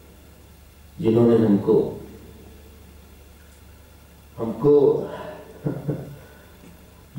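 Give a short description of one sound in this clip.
A man speaks calmly into a microphone in short phrases.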